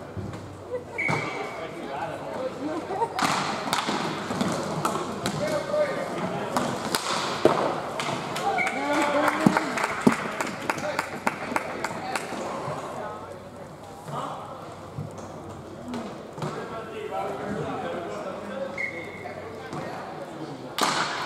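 Skate wheels roll and scrape on the floor.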